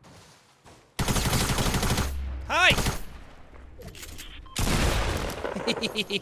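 Gunfire bursts loudly in a video game.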